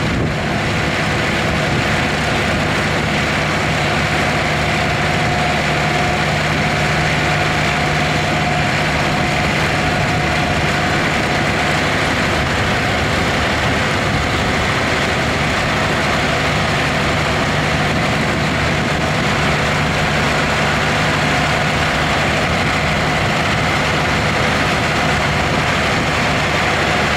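A harvester clatters and rattles as it lifts crops.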